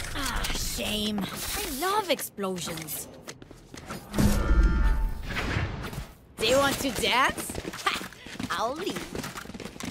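A blade swishes through the air.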